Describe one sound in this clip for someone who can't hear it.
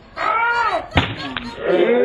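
A melon smashes with a thud onto pavement.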